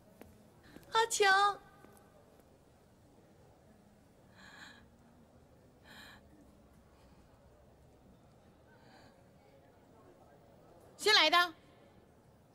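A young woman speaks softly and tearfully, close by.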